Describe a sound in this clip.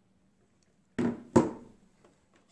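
A plug clicks into a power socket.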